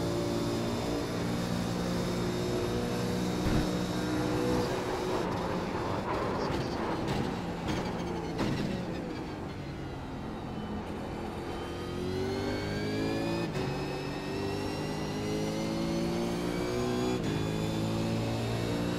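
A racing car engine roars at high revs, dropping in pitch as it shifts down and climbing again as it speeds up.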